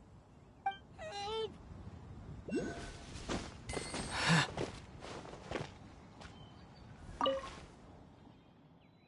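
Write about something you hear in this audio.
Footsteps rustle through grass and scrape on rock.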